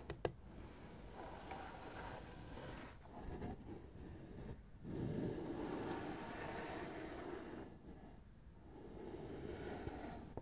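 Fingertips rub and scratch across a tin lid.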